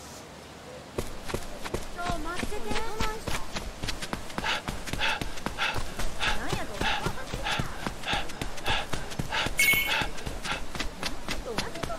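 Footsteps run quickly over packed dirt.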